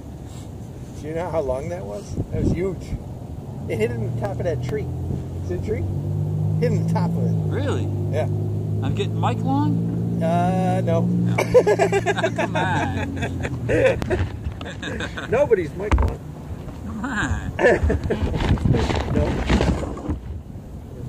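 A man talks with animation, close by, outdoors.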